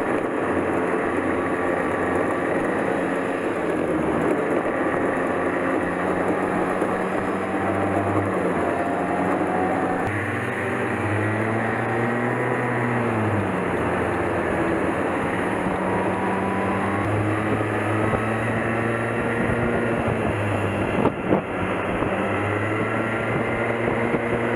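Other kart engines whine nearby.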